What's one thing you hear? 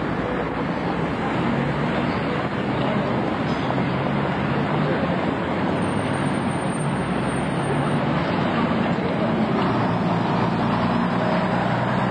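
A bus engine rumbles steadily close by.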